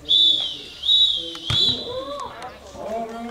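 A referee's whistle blows three short blasts.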